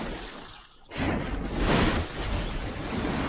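A huge wave crashes and roars.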